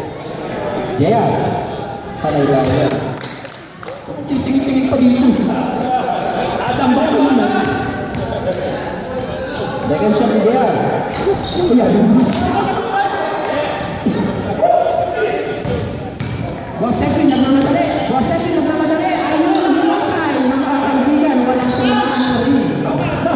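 Men shout and call out to each other across a large echoing gym.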